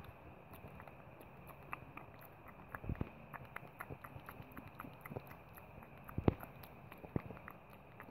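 A plastic toy horse taps and rustles softly as a hand moves it.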